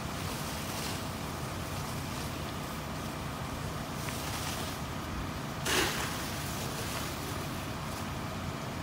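A large fire roars and crackles outdoors.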